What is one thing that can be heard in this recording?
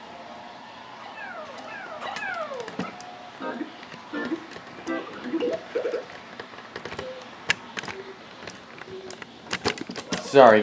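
Cheerful game music plays from a television speaker.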